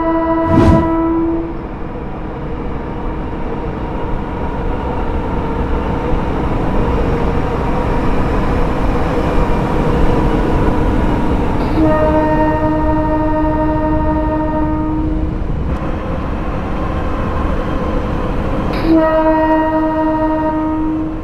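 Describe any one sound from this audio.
A train engine rumbles steadily as it approaches and passes.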